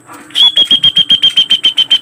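A pigeon flaps its wings in flight.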